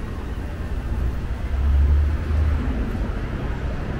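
Washing machines hum and tumble steadily.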